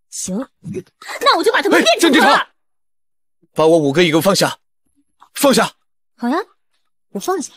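A young man shouts angrily.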